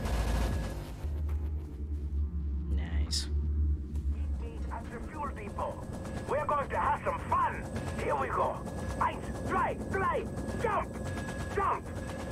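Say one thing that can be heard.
A helicopter engine drones and thumps steadily.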